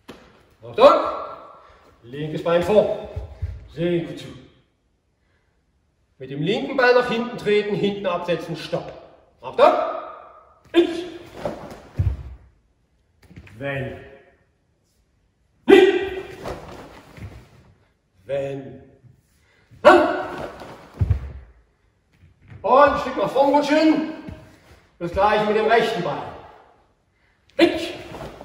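An older man speaks calmly and clearly, close by, in short phrases.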